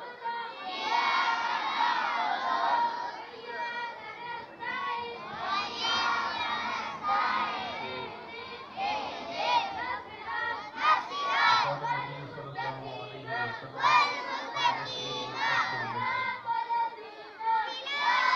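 A large group of young children chant together loudly outdoors.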